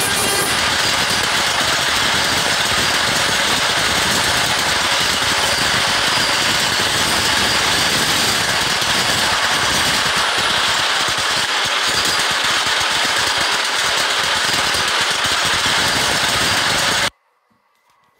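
A subway train rumbles and clatters loudly along elevated tracks at speed.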